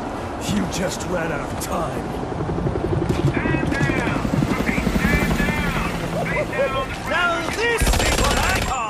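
A man's voice gives orders through a helicopter loudspeaker.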